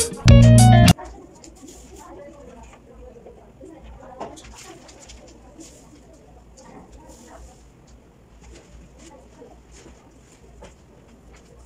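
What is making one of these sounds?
Paper rustles and crinkles against a wall board.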